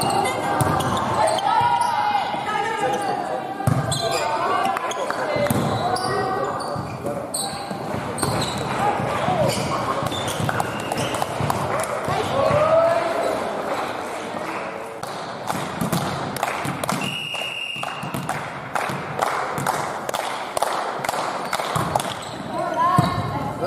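Young girls shout and call out in an echoing hall.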